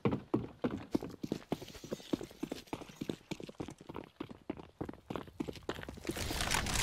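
Quick footsteps run over a hard floor.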